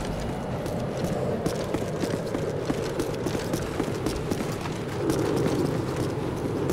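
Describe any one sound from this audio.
Quick footsteps thud on a hard floor.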